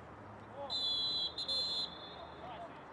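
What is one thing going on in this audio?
A referee's whistle blows in two sharp blasts.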